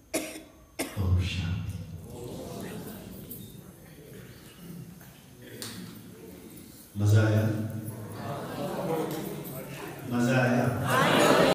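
A middle-aged man speaks with animation into a microphone, heard through loudspeakers.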